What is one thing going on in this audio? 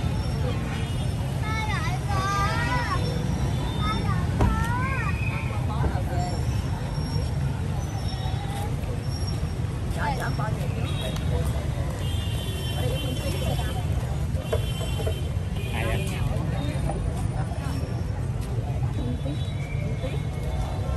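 A crowd murmurs and chatters outdoors nearby.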